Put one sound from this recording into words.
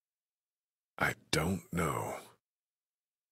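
A man speaks briefly in a worried voice.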